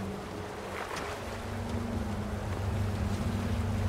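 A small waterfall rushes and splashes nearby.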